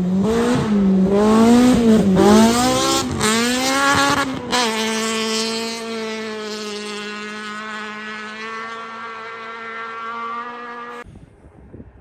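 A car engine hums as a car drives past.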